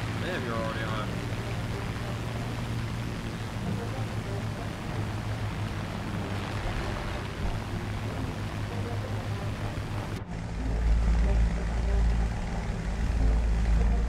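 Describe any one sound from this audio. A propeller plane's engine drones steadily.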